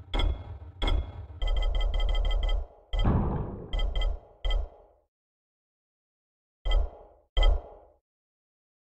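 Short electronic beeps and clicks sound as a menu selection moves.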